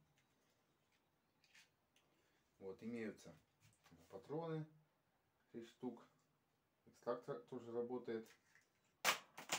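A plastic toy pistol clicks and rattles in a man's hands.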